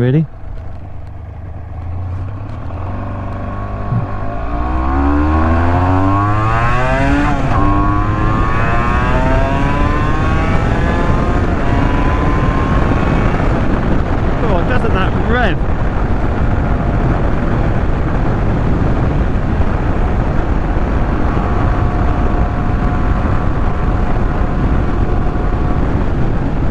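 A motorcycle engine revs up through the gears as the bike speeds up.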